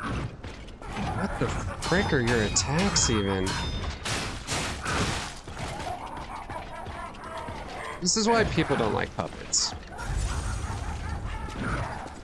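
Metal weapons clang and strike in combat.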